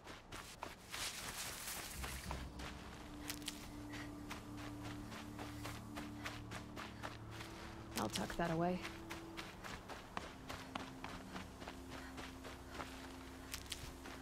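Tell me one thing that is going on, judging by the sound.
Footsteps run quickly over grass and rock.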